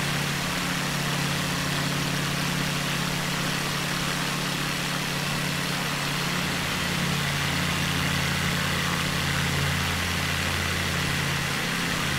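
Wind rushes past a small plane.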